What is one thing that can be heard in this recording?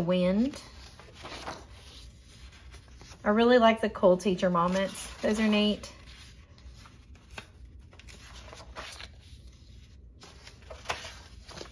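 Paper pages rustle and flip as a binder's pages are turned.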